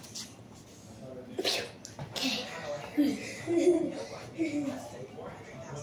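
Feet thump softly on a floor as boys dance.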